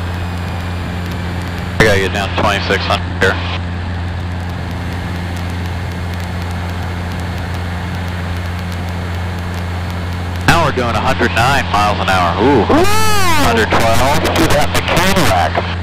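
An airplane engine drones steadily in the cabin.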